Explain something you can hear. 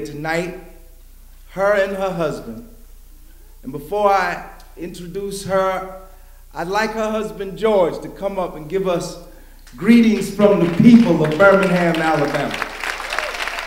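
An older man speaks steadily into a microphone.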